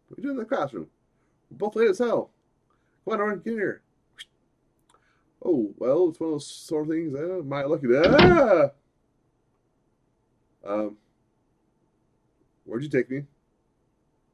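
A man reads out lines in varied, playful voices close to a microphone.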